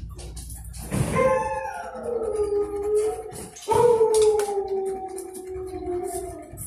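A dog howls in long, slowly falling cries close by.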